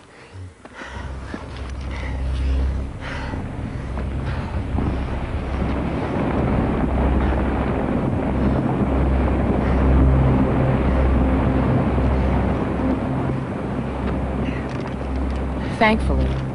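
An avalanche of snow roars down a mountainside with a deep rumble.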